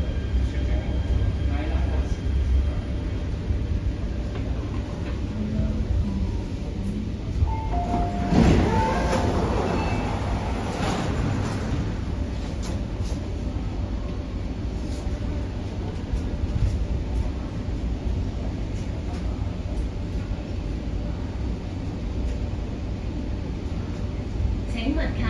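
A train's interior rumbles and hums steadily.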